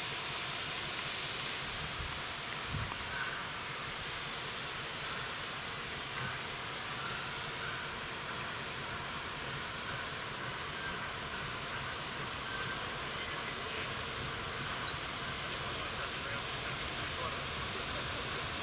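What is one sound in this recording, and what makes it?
A steam locomotive on a rack railway chuffs as it pulls away.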